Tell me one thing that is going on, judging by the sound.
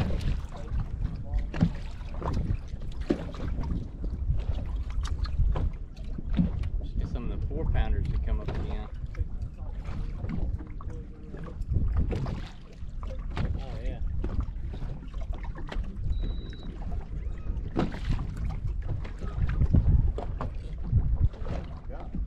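Waves lap against a boat's hull.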